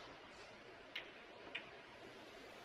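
Snooker balls knock together with sharp clicks.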